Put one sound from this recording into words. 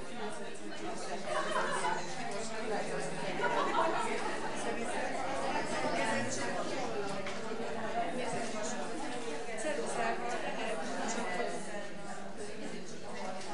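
Many women chatter at once in a large echoing room.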